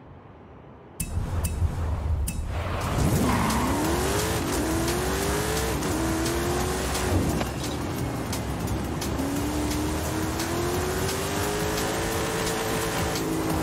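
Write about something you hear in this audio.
A car engine roars and revs up through the gears.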